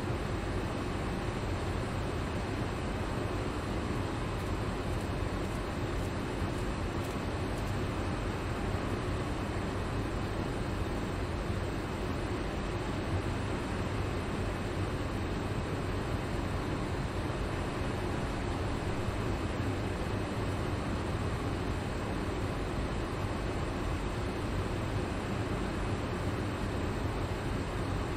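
An electric train idles with a steady low hum.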